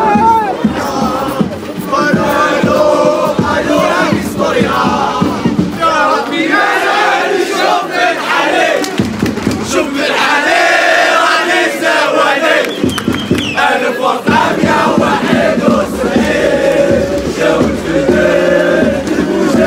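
A large crowd of young men chants and sings loudly outdoors.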